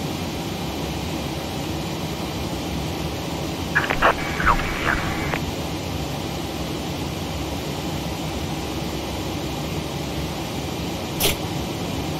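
Jet engines hum steadily at idle.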